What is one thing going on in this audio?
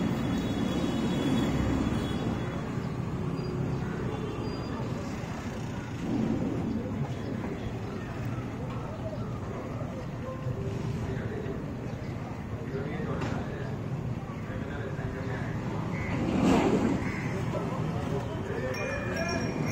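Traffic hums steadily outdoors along a busy street.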